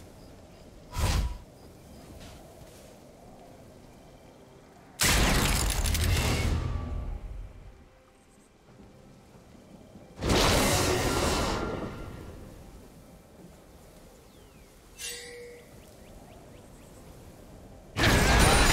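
Game sound effects whoosh and burst as a character moves and casts abilities.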